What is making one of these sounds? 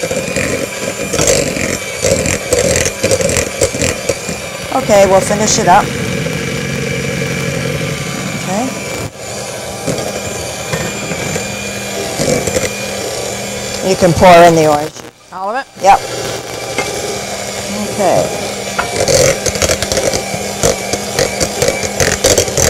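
An electric hand mixer whirs, beating batter in a bowl.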